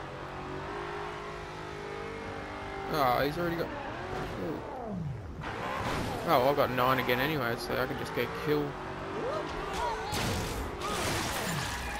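A car engine roars as the car races at speed.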